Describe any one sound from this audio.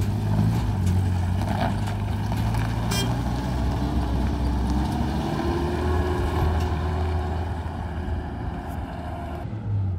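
Tyres crunch on a gravel road.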